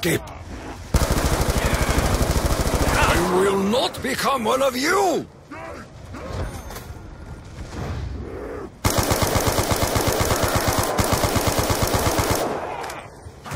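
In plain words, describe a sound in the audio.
A machine gun fires rapid bursts of shots.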